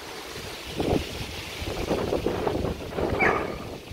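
A dog's paws rustle through grass.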